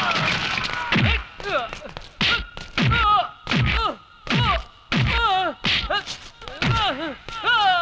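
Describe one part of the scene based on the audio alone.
Heavy punches thud again and again.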